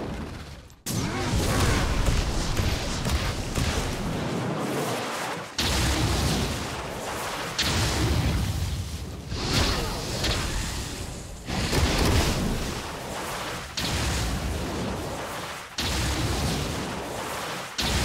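Fiery magic blasts whoosh and crackle.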